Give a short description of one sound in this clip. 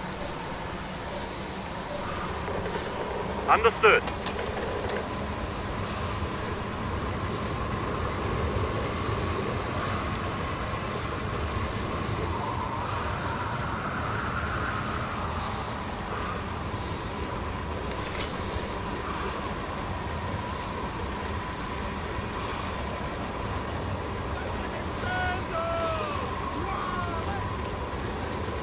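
Bicycle wheels whir steadily on a road.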